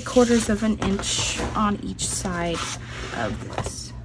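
A plastic cutting mat is set down on a wooden surface.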